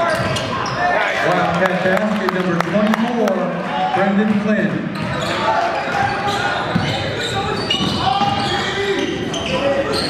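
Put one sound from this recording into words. A crowd of spectators talks and cheers nearby.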